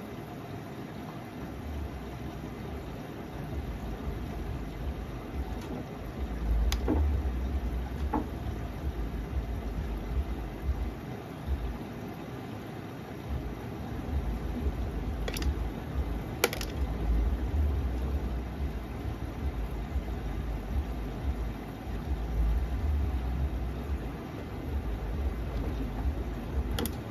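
Wet laundry tumbles and flops inside a washing machine drum.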